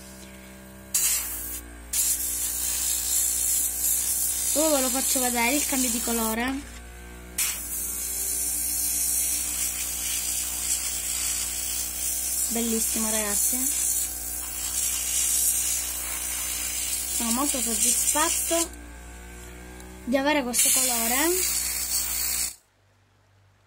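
An airbrush hisses in bursts as it sprays paint.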